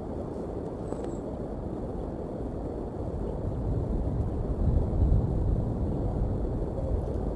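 A bald eagle chick peeps faintly.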